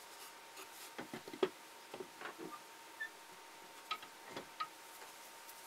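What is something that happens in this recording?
Wooden block knocks and clunks against a metal vise.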